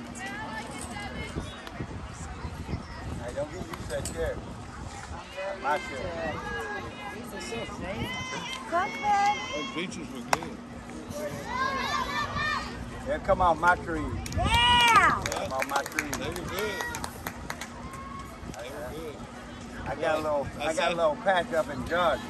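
Young women shout and cheer outdoors across a field.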